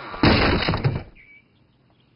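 A heavy board clatters down onto the ground.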